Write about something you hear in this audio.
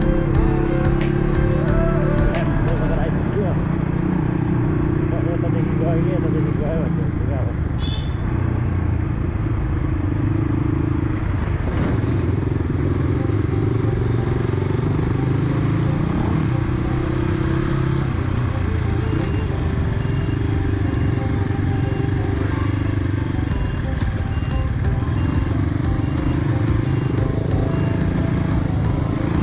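A motorcycle engine rumbles close by, rising and falling in pitch as it speeds up and slows down.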